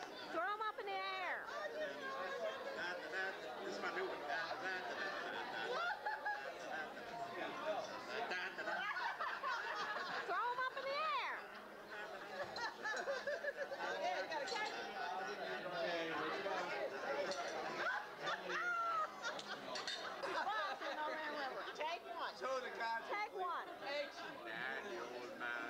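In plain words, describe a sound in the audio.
A crowd of people chatter in a busy room.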